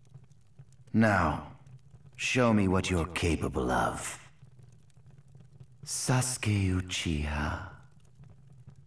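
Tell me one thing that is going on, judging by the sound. A man speaks slowly and menacingly in a low, smooth voice.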